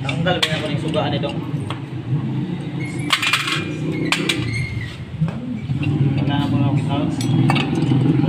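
Metal parts clink and scrape as hands work on an engine cover.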